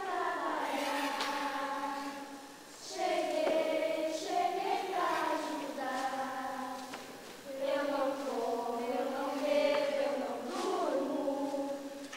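A woman sings a slow, drawn-out melody in a reverberant hall.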